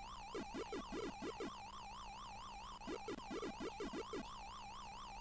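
An arcade game character makes quick chomping blips in bursts.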